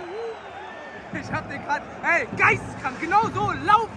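A young man speaks excitedly close by.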